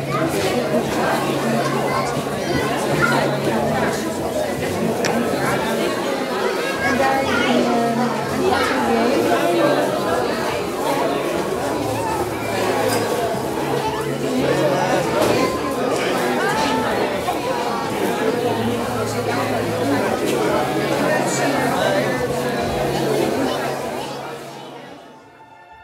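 Children and adults chatter nearby in a busy crowd.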